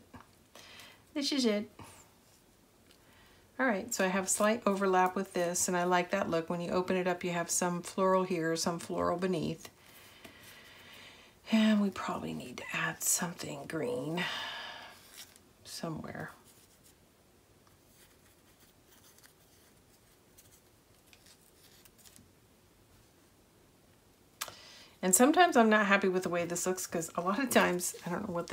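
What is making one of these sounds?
Paper rustles softly as hands press and adjust it.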